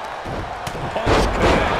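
A body slams onto a wrestling ring mat.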